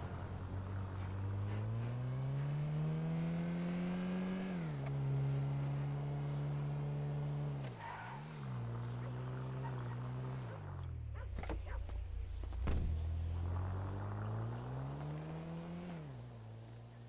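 A car engine revs up and down as it drives.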